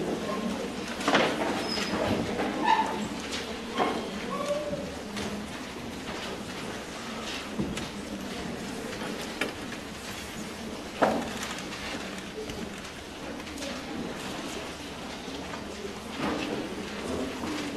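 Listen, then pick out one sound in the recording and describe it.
Musicians shuffle and handle their instruments with light knocks and clicks in an echoing hall.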